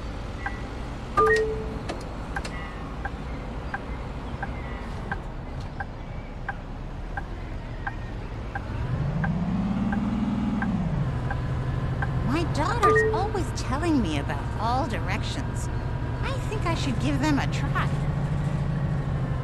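A bus engine hums steadily, rising in pitch as it speeds up and then settling.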